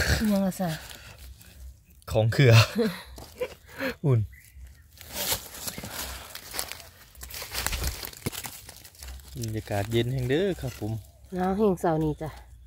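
A knife slices through a soft mushroom.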